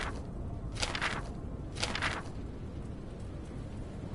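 A paper page flips over.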